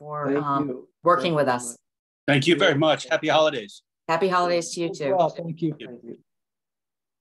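A woman speaks cheerfully over an online call.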